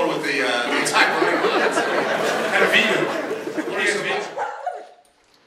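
A man talks with animation into a microphone over loudspeakers.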